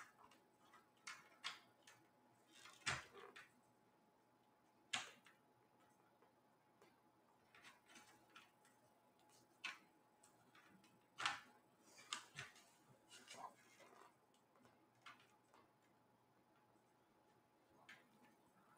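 Plastic clicks and snaps as a laptop casing is pried open by hand.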